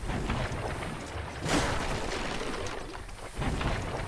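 Armour clanks as a figure rolls across the ground.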